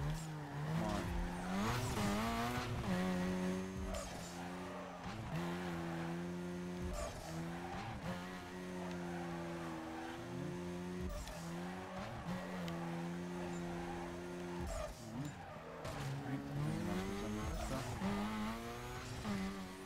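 Tyres squeal as a car drifts sideways.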